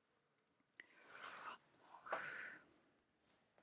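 A woman blows sharply into a small tube, close by.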